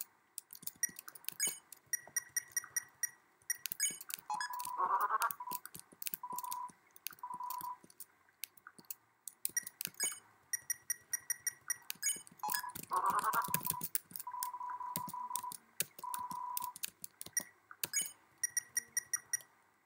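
A soft electronic tick sounds as a game menu cursor moves.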